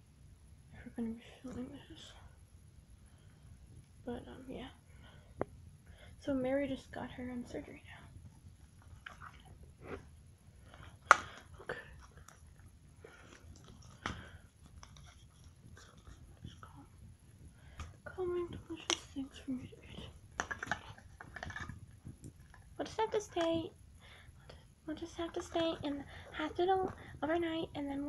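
A hand rustles and handles a soft plush toy.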